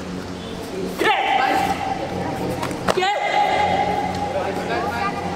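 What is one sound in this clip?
Young fighters let out sharp, loud shouts.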